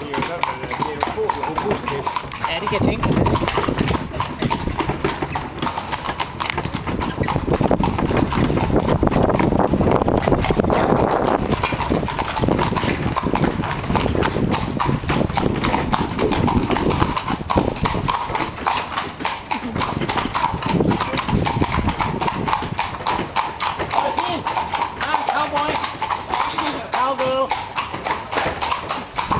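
Horses' hooves clop on cobblestones.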